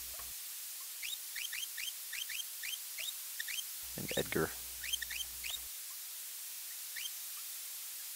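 Short electronic menu blips chirp in quick succession.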